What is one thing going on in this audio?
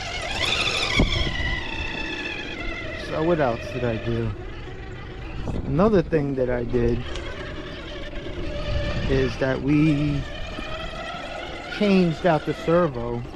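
Plastic tyres scrape and grind on bare rock.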